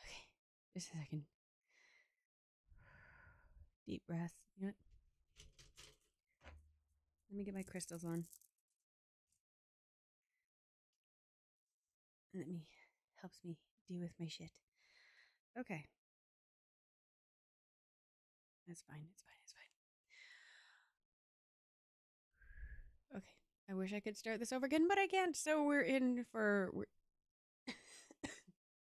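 A woman speaks into a microphone in short bursts with pauses.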